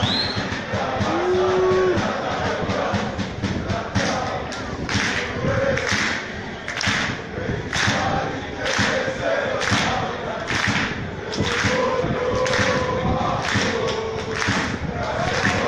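A crowd of fans chants loudly in a large open stadium.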